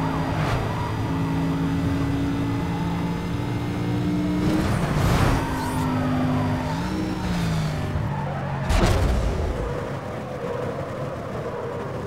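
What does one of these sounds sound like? Tyres skid and screech on the road.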